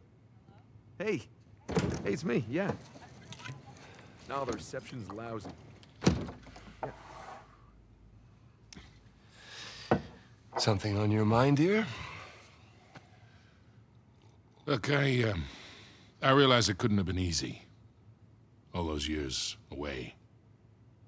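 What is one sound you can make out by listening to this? A middle-aged man speaks in a low, relaxed voice.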